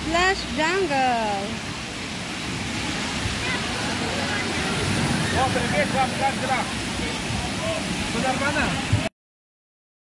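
Water splashes and sprays steadily.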